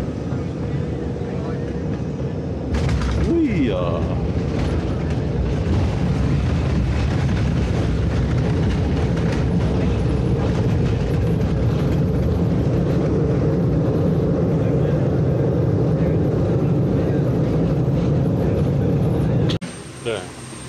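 A jet engine roars loudly as an airliner speeds down a runway.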